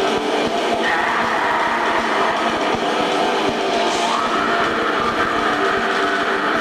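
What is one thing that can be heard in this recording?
Drums pound steadily.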